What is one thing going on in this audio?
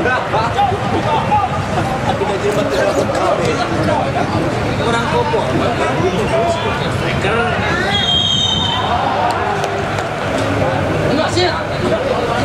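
Young men shout to each other on an outdoor pitch.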